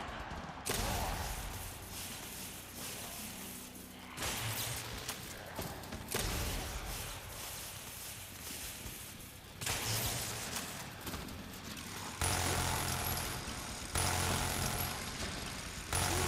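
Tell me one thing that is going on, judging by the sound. Gunshots boom loudly every few seconds, each trailing off with a rumbling echo.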